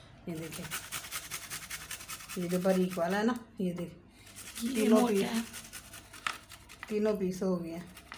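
Cheese scrapes against a metal grater in quick strokes.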